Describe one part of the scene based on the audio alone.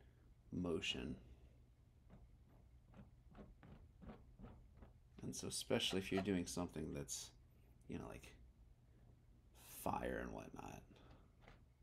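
A man speaks nearby in a relaxed, casual voice.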